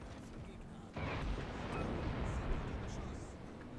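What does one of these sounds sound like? Heavy naval guns boom.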